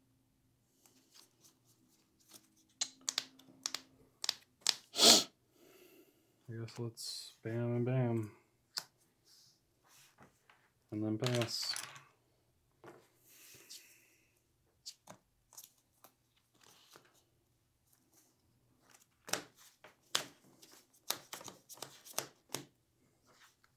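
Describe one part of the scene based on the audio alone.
Playing cards tap and click softly against a table as they are handled and shuffled.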